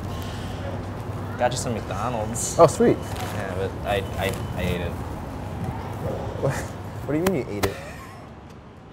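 Two young men talk as they walk, close by.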